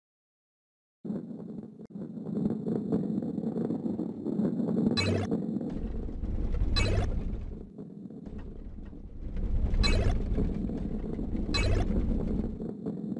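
A heavy ball rolls with a low rumble.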